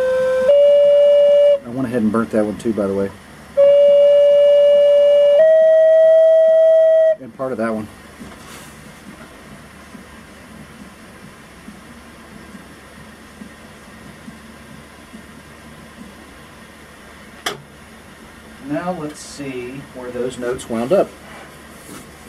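A gas torch flame hisses steadily.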